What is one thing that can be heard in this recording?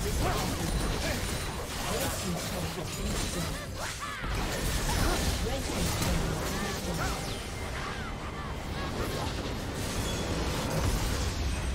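Game spells and weapons clash and crackle in a busy fight.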